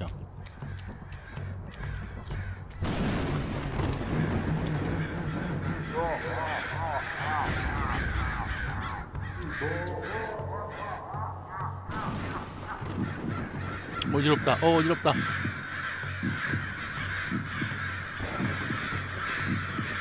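Footsteps crunch steadily along a dirt path.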